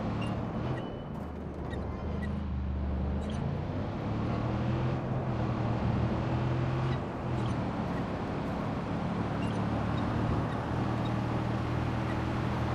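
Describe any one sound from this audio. An off-road vehicle's engine drones and revs as it drives.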